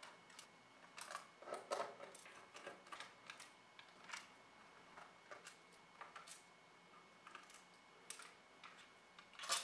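Small metal screws clink as they are set down on a hard surface.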